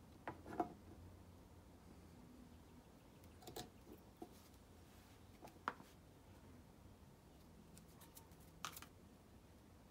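Small objects click and tap against each other on a wooden surface.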